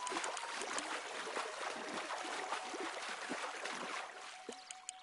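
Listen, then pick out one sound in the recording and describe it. A fish splashes and thrashes in water.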